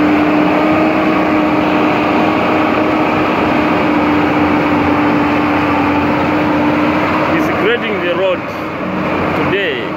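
A motor grader's blade scrapes through dirt.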